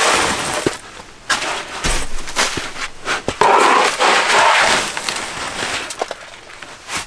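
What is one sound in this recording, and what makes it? A metal scoop scrapes and splashes through slushy ice water.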